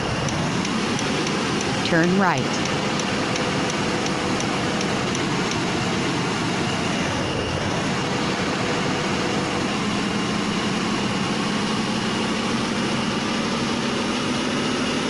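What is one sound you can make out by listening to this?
Tyres roll on the road with a steady rush.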